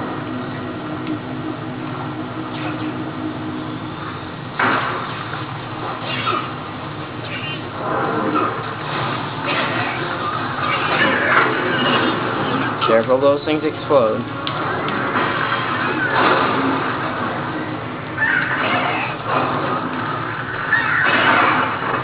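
Video game sound effects play from a television speaker.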